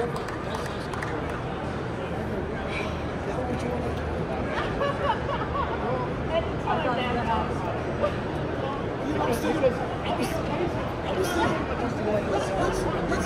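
A large crowd murmurs and chatters in a big echoing hall.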